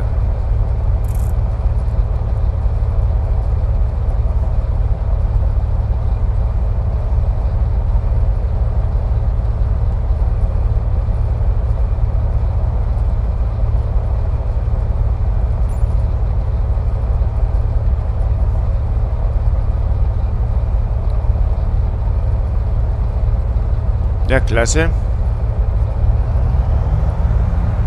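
The piston engine of a single-engine propeller plane drones at low power as the plane taxis.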